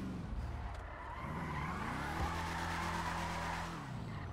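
Car tyres screech while sliding.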